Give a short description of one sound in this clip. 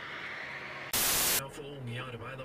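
Static hisses in a short burst.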